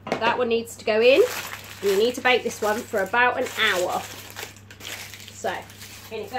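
Baking paper crinkles as it is handled.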